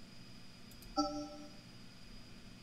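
A short game notification chime rings.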